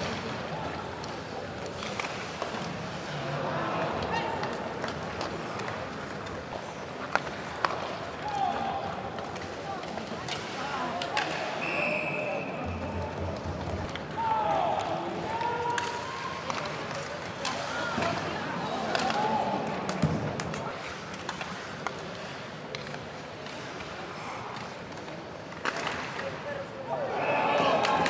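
A small crowd murmurs and calls out in a large echoing arena.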